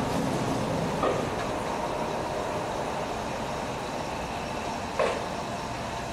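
Train wheels clack and squeal on the rails.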